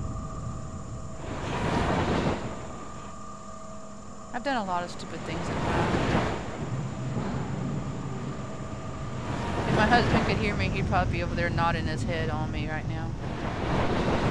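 A machine whooshes in slow, repeating swells.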